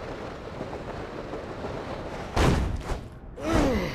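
A heavy thump lands on a hard surface.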